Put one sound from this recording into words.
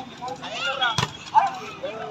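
A volleyball is spiked with a sharp slap.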